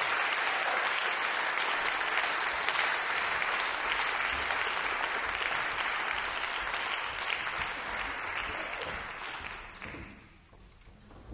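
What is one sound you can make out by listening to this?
An audience applauds loudly in a large hall, then the clapping fades.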